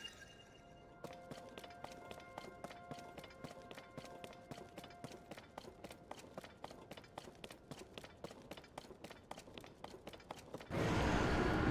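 Quick footsteps run over stone paving.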